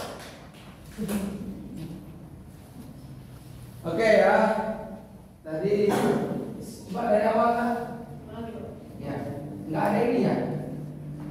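A man speaks aloud to a room.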